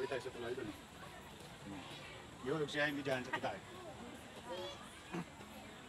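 Young children shout and chatter playfully nearby.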